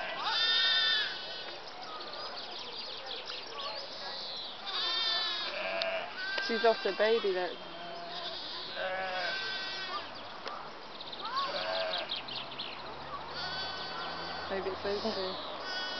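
Lambs bleat again and again in high, wavering cries.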